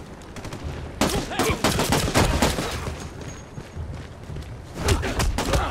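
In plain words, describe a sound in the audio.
Gunshots and sharp impacts crack in quick bursts.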